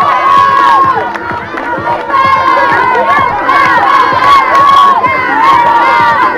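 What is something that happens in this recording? A crowd of adults and children cheers and shouts loudly outdoors.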